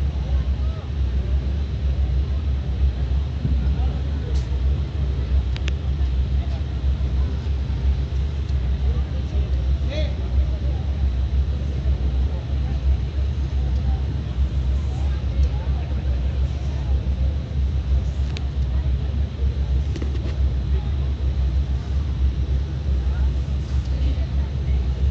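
Loud, booming music plays through loudspeakers outdoors.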